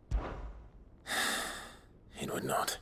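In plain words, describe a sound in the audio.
A man answers briefly in a low, calm voice.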